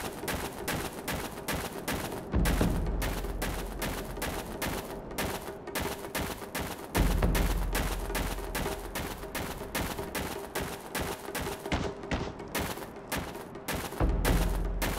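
Quick footsteps patter steadily on a hard floor.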